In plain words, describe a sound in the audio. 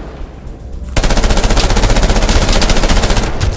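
Rapid gunshots rattle loudly.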